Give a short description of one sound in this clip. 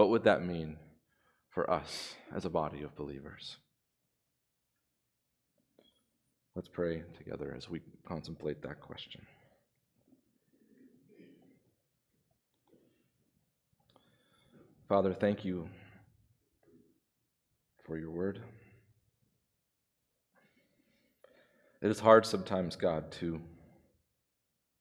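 A man speaks calmly into a microphone, in phrases with pauses.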